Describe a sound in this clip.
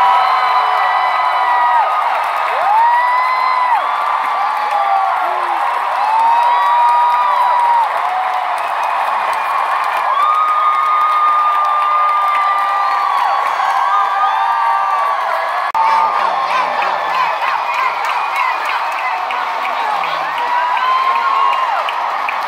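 A large crowd sings along loudly in a big echoing arena.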